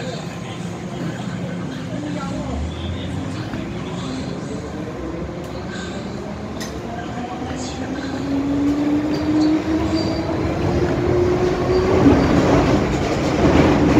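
A train rumbles along the tracks with a steady roar.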